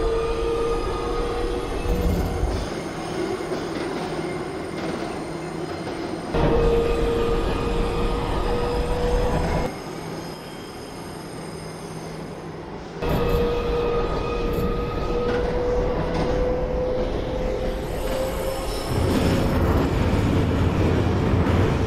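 A subway train rumbles along the tracks.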